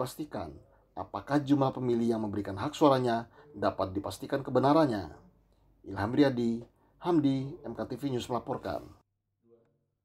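A man speaks calmly and formally through a microphone.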